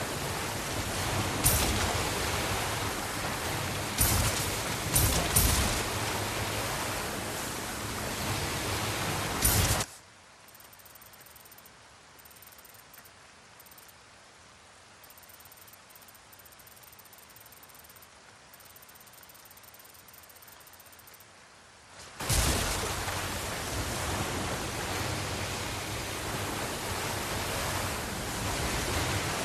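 Water splashes and churns around a moving boat.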